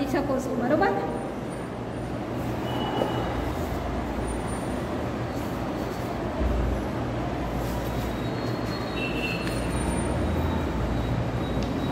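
Pages of a book rustle as they are turned.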